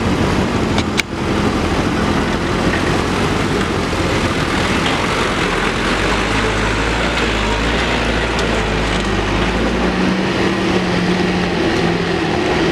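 A second truck's engine rumbles low as the truck crawls through mud.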